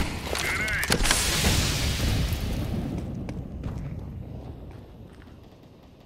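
A grenade explodes nearby with a loud, rumbling blast that slowly fades.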